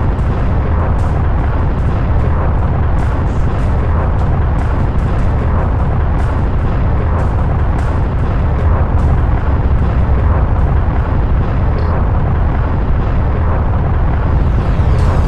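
A spaceship's engines roar steadily.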